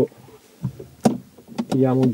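A plastic panel clicks into place.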